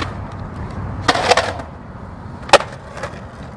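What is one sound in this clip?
A skateboard clatters and knocks against concrete.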